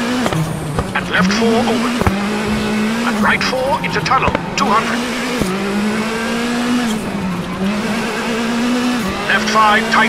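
A rally car engine revs under load and shifts up and down through the gears.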